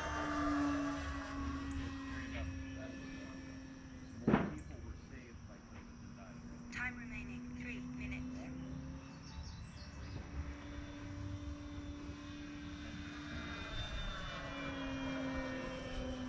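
A small model plane's engine drones steadily high overhead.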